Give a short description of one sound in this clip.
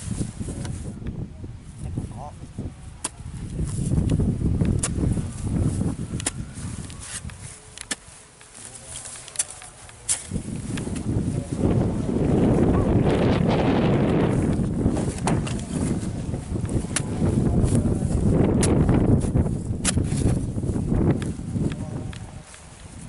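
A hoe thuds into soil, striking again and again.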